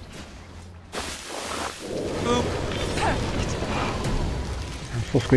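Game spells crackle and blast during a fight.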